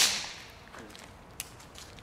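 A firework bursts with a sharp hiss.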